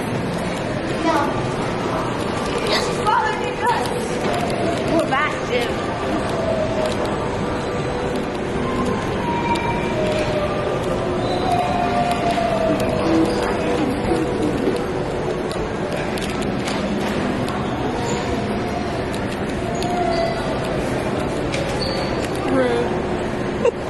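Young women talk and call out excitedly nearby in a large echoing hall.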